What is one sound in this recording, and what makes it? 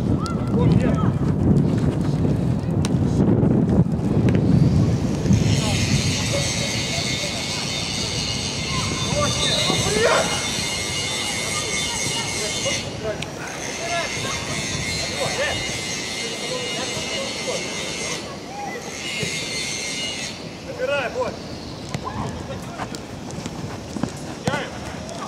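Young players shout and call out to each other across an open outdoor field.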